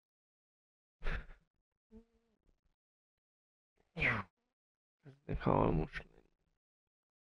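A man speaks briefly into a close microphone in short bursts.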